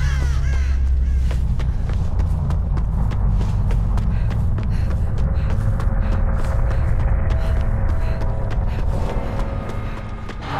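Quick footsteps run over dry ground and rustle through brush.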